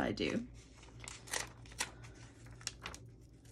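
Stiff paper crinkles and rustles softly in hands.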